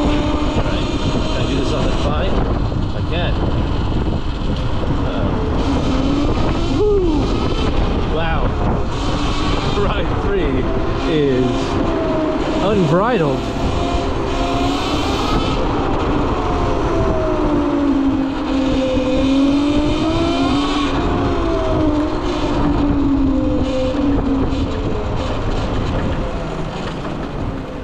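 Wind rushes loudly past a moving motorbike.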